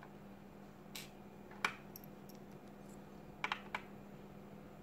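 Small metal parts click softly against a metal tool.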